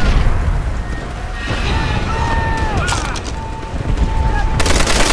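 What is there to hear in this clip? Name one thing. Heavy rain pours down outdoors.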